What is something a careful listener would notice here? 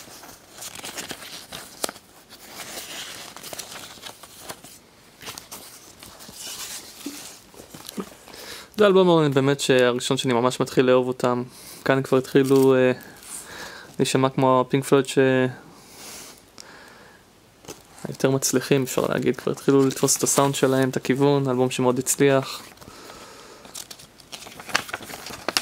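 Paper pages rustle and flip as a booklet is handled.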